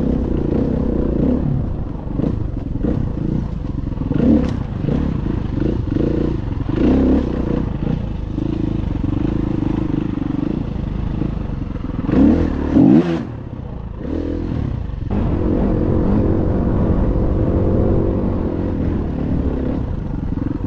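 Knobby tyres rumble over a bumpy dirt trail.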